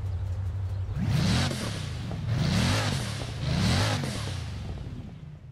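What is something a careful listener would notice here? A car engine revs sharply three times while idling.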